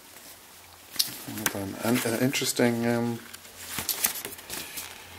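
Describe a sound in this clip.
Book pages flip and rustle close by.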